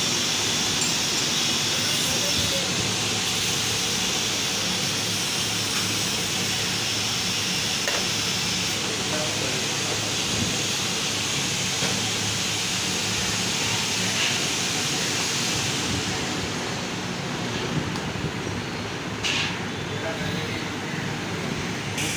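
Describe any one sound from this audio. A knife slices softly through raw meat.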